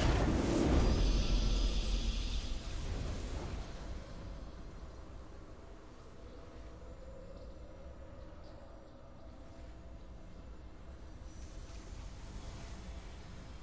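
A triumphant game music sting plays and fades.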